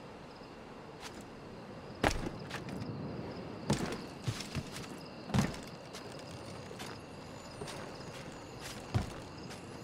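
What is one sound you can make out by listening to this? Hands and feet thud and scrape on stone and wood while climbing.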